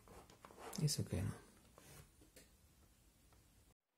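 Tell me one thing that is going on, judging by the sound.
A plug clicks into a cable connector.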